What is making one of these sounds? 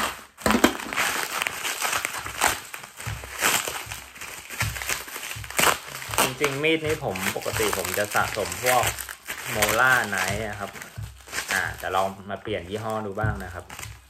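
Bubble wrap crinkles and rustles in hands.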